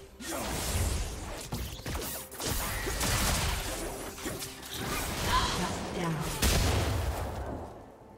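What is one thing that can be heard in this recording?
Spell effects burst and crackle in a fast fight.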